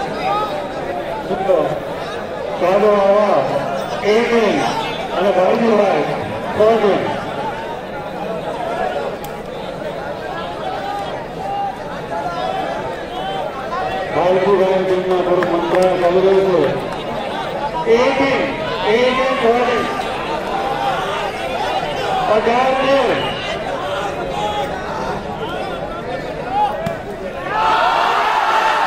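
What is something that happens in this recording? Young men shout and call to each other nearby.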